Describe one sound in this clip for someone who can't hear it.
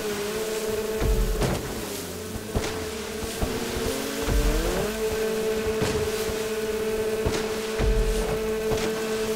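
Waves slap against a jet ski's hull.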